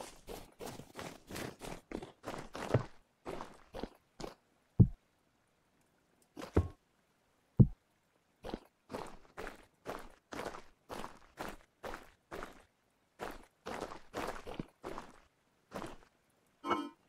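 Footsteps tread quickly on stone.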